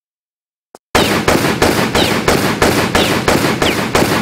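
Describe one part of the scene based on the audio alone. Pistols fire in rapid, loud bursts.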